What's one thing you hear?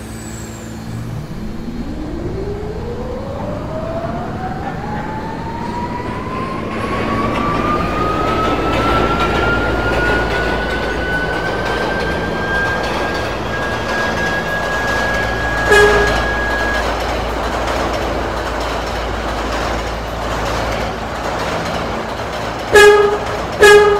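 A train rumbles and rattles along the rails, growing louder.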